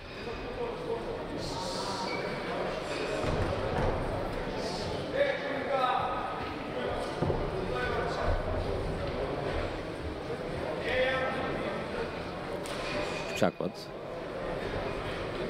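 A crowd murmurs and shouts throughout a large echoing hall.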